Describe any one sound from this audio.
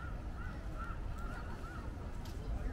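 Men and women talk faintly in the distance outdoors.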